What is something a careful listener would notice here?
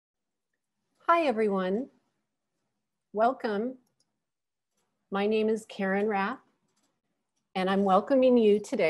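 A woman speaks with animation through an online call, in short bursts with pauses.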